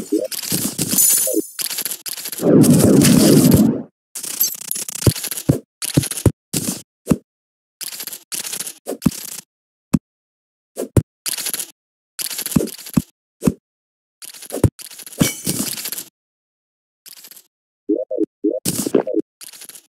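A pickaxe chips at rock in quick, short bursts.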